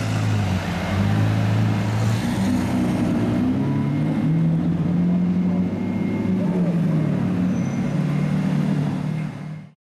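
A sports car engine rumbles loudly and revs as it pulls away.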